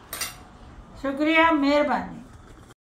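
An elderly woman speaks with animation up close.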